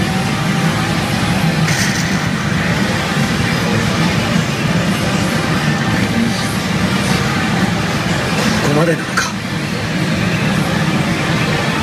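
A gaming machine plays loud, busy electronic music and sound effects.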